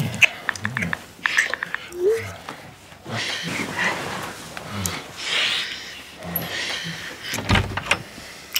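A woman and a man breathe heavily and moan softly.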